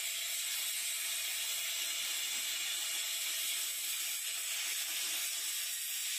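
A welding torch hisses and crackles steadily against metal.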